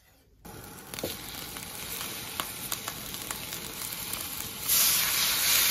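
Food sizzles in hot oil in a wok.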